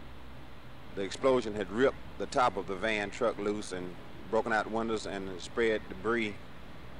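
A man speaks calmly into microphones, heard through an old recording.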